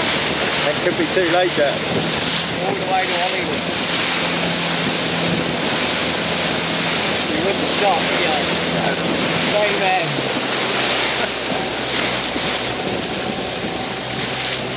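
Wind blows hard over open water.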